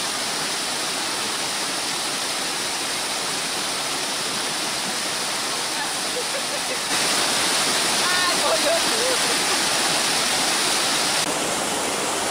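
Water rushes loudly over rocks in a steady roar.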